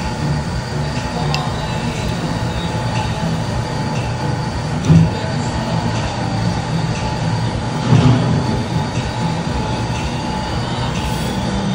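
Chopsticks and a spoon clink against a bowl.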